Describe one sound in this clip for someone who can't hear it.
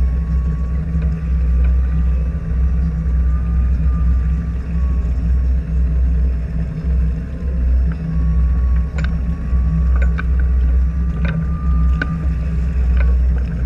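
A fishing reel whirs and clicks as a line is wound in.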